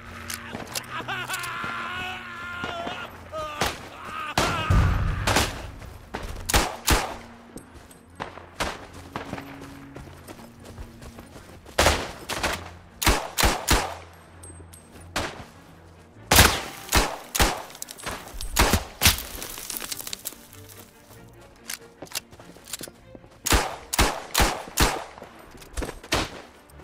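Gunshots crack out in quick bursts.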